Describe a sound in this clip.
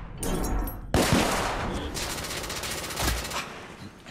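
A revolver fires loud shots that echo.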